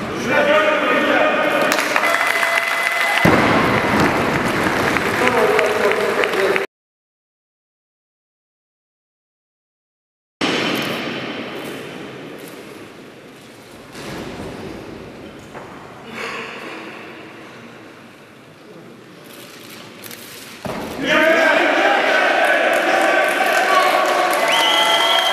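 A crowd cheers and applauds loudly in a large echoing hall.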